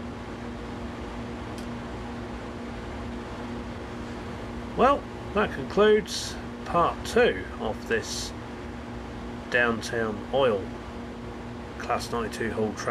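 A train's electric motor hums steadily.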